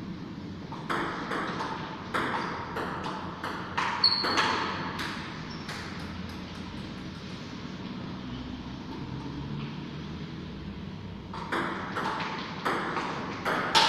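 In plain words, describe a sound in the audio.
A ping-pong ball clicks sharply back and forth off paddles and a table in an echoing room.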